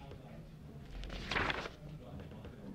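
A book's page rustles as it turns.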